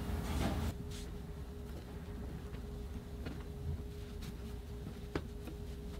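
Fabric rustles softly as cloth is folded and rolled by hand.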